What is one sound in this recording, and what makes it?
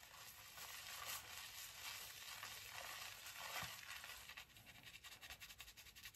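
Wet hands rub and squish soapy lather into fur.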